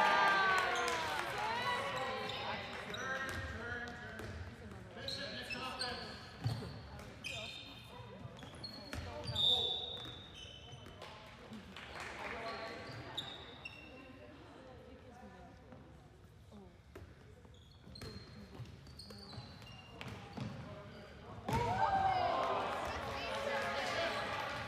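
Young men shout to one another across a large echoing hall.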